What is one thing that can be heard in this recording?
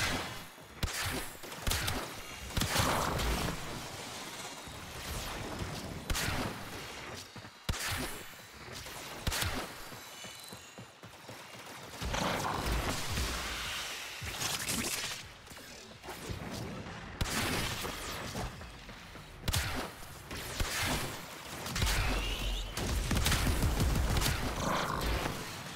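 Bowstrings twang and arrows thud into targets in quick bursts.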